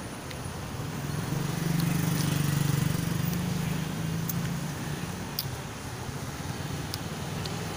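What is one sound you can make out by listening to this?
Hail patters and clicks on a wet street.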